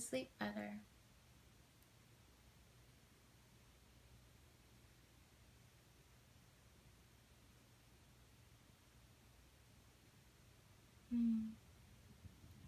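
A young woman speaks softly and calmly close by.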